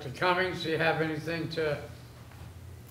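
A man speaks briefly through a microphone in a large room.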